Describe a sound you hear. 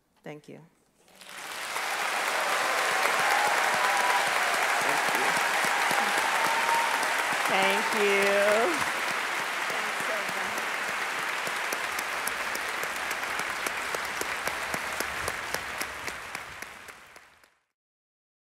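A large audience applauds and cheers loudly in a big hall.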